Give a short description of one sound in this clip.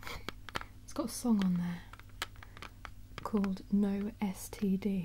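A young woman speaks softly, close by.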